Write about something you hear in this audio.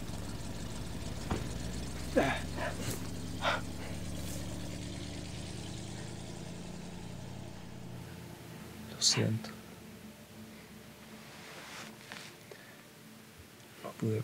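A young man groans in pain.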